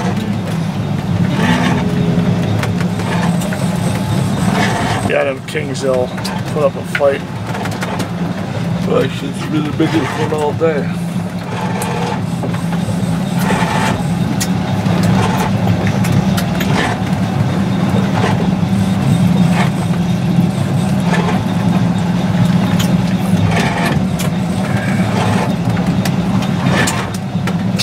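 Water splashes against a boat hull.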